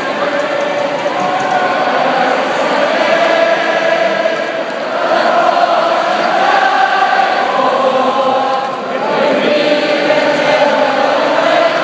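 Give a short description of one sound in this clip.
A man sings through loudspeakers in a large echoing hall.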